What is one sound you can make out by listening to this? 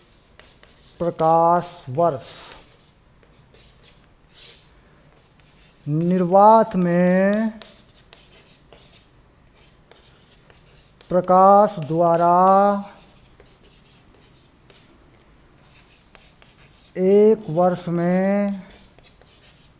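A man speaks in short, measured phrases close by.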